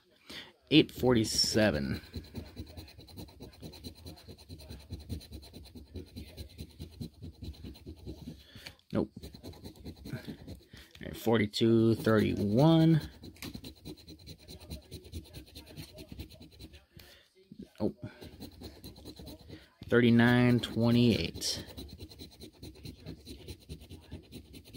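A coin scrapes across a scratch card in short, rapid strokes.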